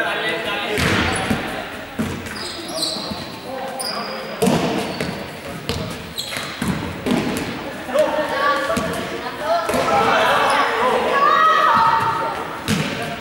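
Young people shout and call out in a large echoing hall.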